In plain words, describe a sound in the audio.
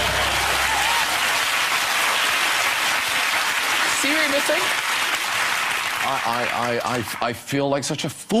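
A studio audience laughs and claps loudly.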